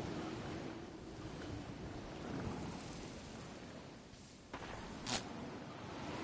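Wind rushes steadily during a glide through the air.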